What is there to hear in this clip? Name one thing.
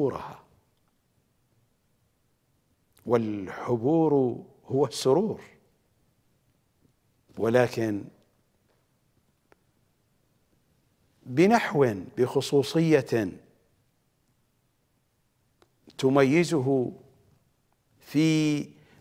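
A middle-aged man speaks slowly and emphatically into a close microphone, with long pauses.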